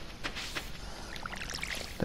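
Water splashes from a watering can onto soil.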